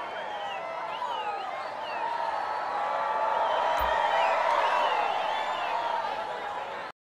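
A large crowd chatters and cheers.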